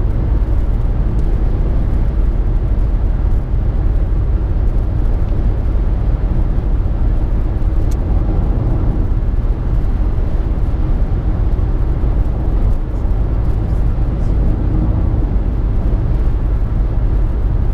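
A car's engine hums steadily at highway speed.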